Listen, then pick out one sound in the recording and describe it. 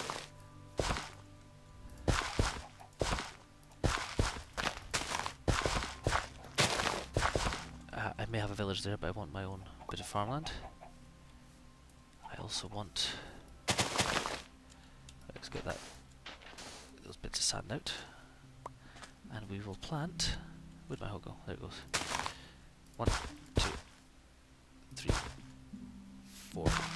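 A hoe thuds into soil again and again.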